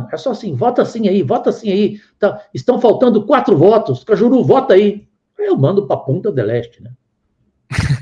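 An older man speaks with animation over an online call.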